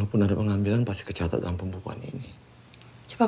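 An older man speaks in a low, serious voice close by.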